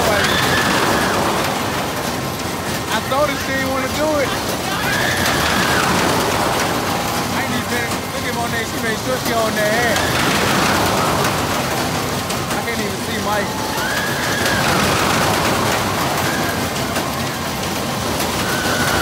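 Riders scream as a fairground ride swoops overhead.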